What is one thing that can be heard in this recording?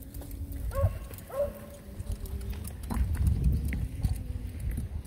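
Wagon wheels roll and rumble over dry grass.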